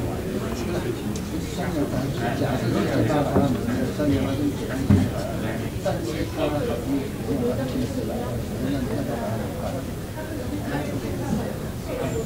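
Several men and women talk at once in a room with some echo.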